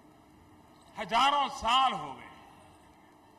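A large crowd chants loudly.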